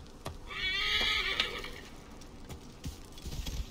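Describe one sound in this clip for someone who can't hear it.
A horse's hooves thud on soft ground.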